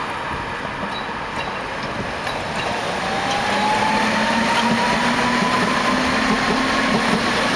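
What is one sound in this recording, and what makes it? A tram rumbles past close by on its rails.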